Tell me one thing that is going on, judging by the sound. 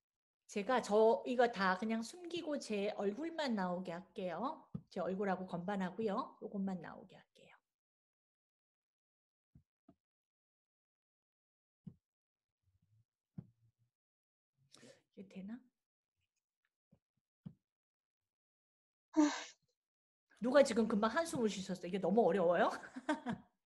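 A woman speaks with animation close by, pausing for a long while.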